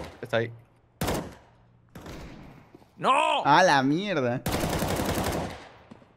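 A rifle fires in short bursts.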